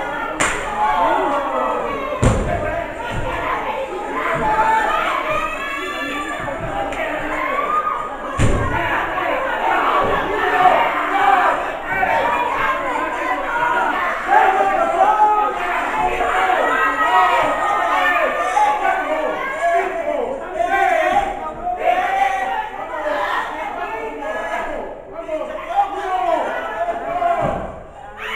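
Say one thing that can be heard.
A crowd of spectators shouts and cheers loudly nearby.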